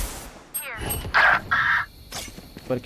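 A loud magical whoosh bursts out close by.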